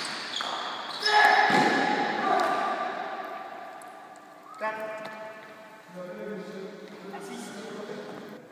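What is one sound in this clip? A man calls out nearby in the echoing hall.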